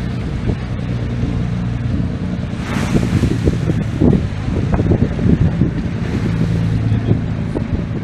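A ferry engine rumbles close by.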